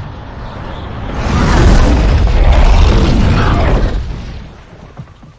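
A fireball bursts with a loud roar.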